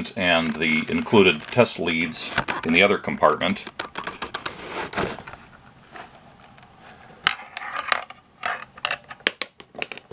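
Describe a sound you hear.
A plastic device slides and scrapes against a leather case.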